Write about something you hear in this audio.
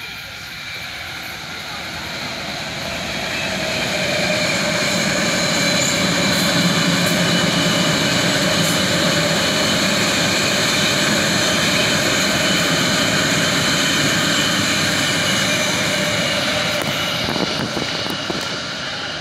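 An electric commuter train approaches and rushes past with a loud rising hum and rumble.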